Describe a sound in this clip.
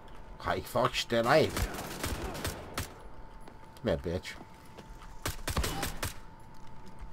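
A pistol fires loud, sharp shots.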